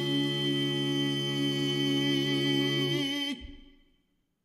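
A group of men sing a sustained chord in harmony through a loudspeaker.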